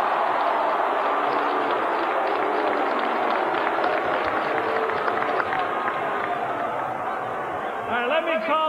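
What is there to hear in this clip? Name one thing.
A large crowd claps and cheers loudly.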